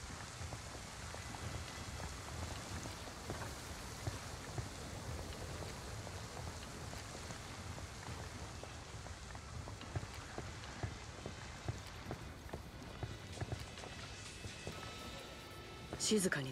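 Footsteps pad softly on a hard floor.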